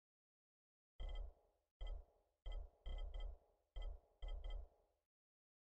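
Short electronic menu blips sound in quick succession.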